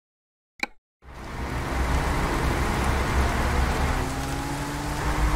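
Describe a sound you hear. A bus engine rumbles steadily as the bus drives along a road.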